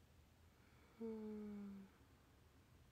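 A young woman hums a short note with her mouth closed.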